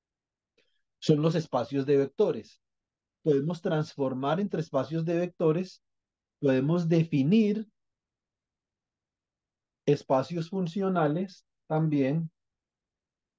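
A man speaks calmly through an online call, explaining in short phrases.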